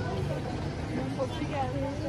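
A broom sweeps on pavement.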